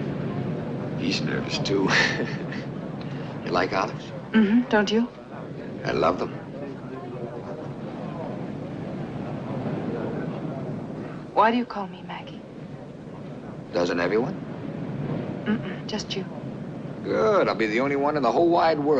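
A man speaks warmly and calmly nearby.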